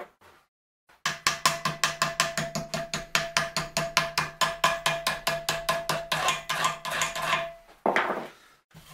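A hammer strikes metal in a fast, steady series of ringing blows.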